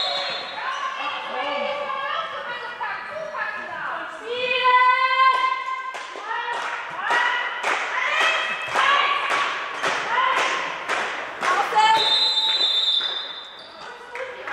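Sneakers squeak sharply on a floor in a large echoing hall.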